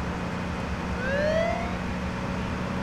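Tyres squeal briefly as a car swerves.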